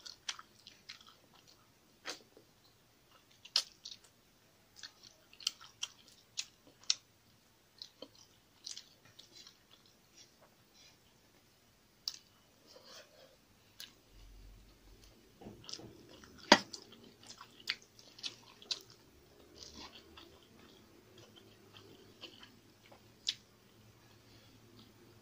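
A young woman chews food loudly and wetly, close to the microphone.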